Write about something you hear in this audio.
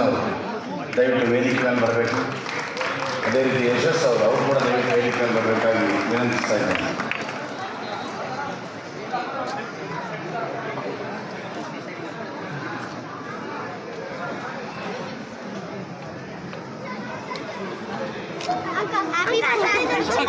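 A large crowd murmurs and chatters loudly all around, outdoors.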